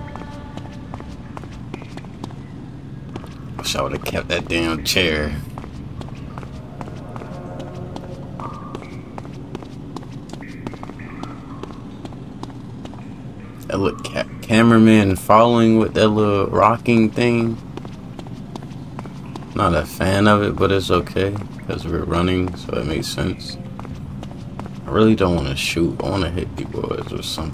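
Footsteps echo on a hard floor in a large hall.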